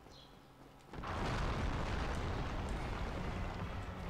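A stone floor collapses with a loud, deep rumble.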